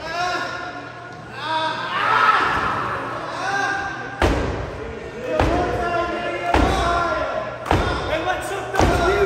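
A crowd cheers and shouts in an echoing hall.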